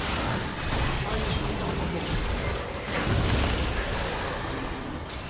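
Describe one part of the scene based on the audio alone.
Game spells crackle and burst in a fast fight.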